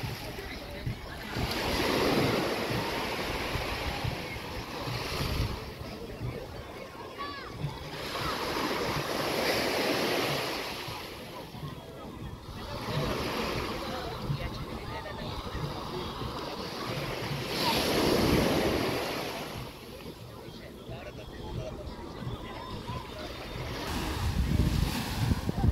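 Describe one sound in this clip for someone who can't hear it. Small waves wash and break on the shore in recurring surges.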